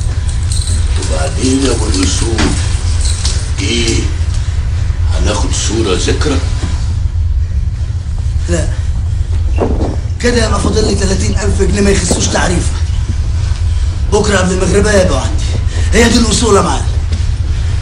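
An elderly man speaks loudly and with animation, close by.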